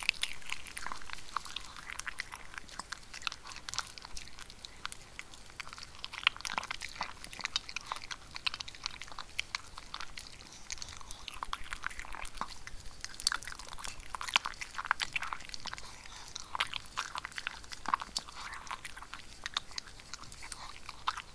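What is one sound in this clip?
Dry kibble clinks against a plastic bowl.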